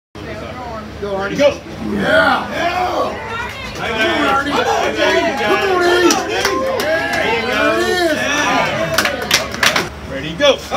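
A crowd of men shouts and cheers excitedly close by.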